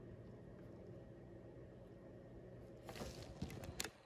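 A coin clicks down onto a hard surface.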